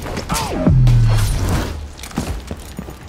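A blade stabs into a man with a heavy, wet thud.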